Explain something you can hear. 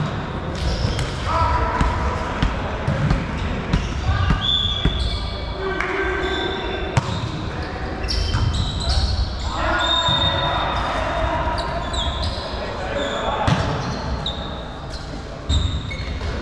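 A volleyball thuds as players hit it back and forth in a large echoing hall.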